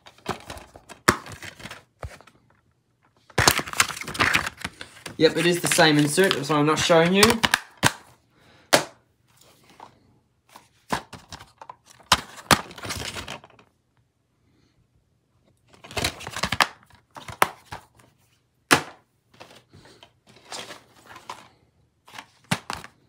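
Plastic disc cases clack and rattle as they are handled.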